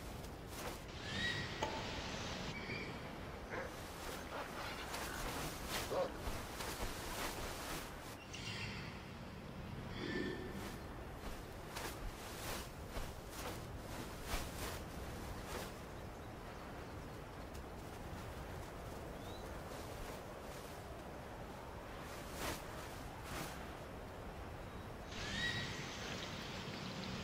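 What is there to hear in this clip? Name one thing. An eagle screeches.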